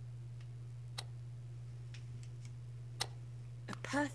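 A metal crank clicks as it turns.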